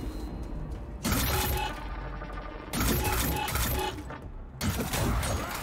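Swords clash and slash in quick bursts.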